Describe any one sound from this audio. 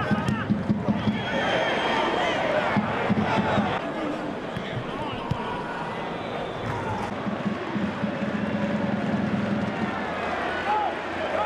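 A large crowd roars in an echoing stadium.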